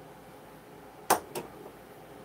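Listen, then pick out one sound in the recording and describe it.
A glass clinks on a table.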